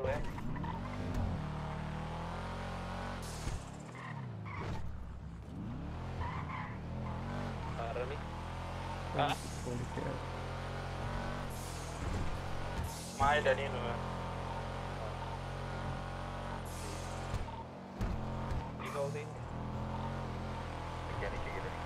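A car engine revs and roars as the car drives along.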